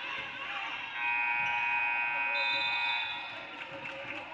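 A loud buzzer sounds steadily.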